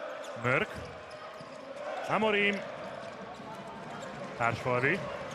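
A crowd chants and cheers in a large echoing hall.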